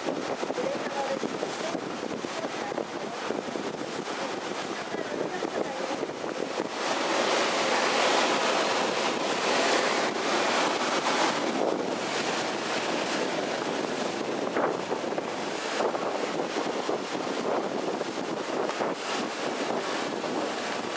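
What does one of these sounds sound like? Wind blows past outdoors.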